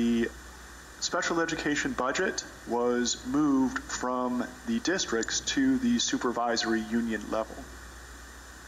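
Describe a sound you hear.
A man speaks calmly through a microphone in a large, echoing hall.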